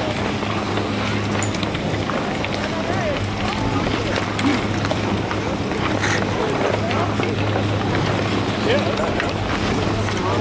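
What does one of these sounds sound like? A crowd of young people chatters nearby.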